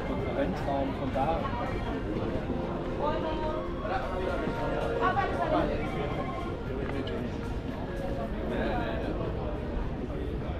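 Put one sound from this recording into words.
Men and women chat in passing nearby.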